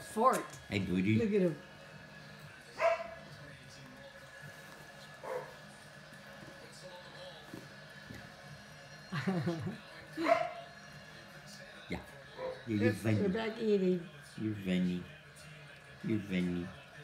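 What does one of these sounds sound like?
Puppies whine and yelp close by.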